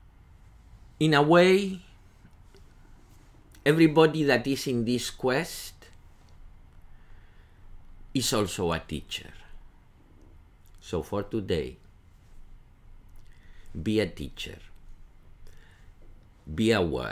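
An older man speaks calmly, in short bursts with pauses, close to a microphone.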